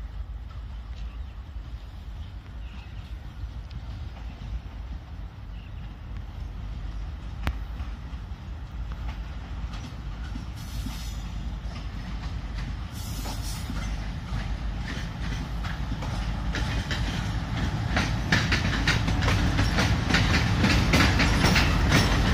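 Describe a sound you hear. A diesel locomotive rumbles as it approaches and grows louder.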